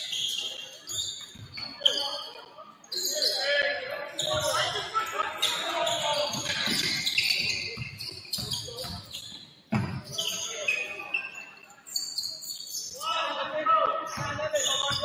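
Spectators chatter and call out in an echoing hall.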